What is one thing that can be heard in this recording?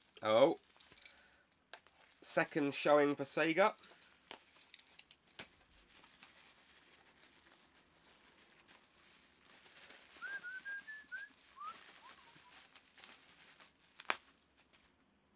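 Plastic packaging rustles and crinkles in a man's hands.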